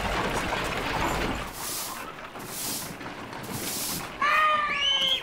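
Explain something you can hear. Wooden cart wheels rumble and creak over a dirt road.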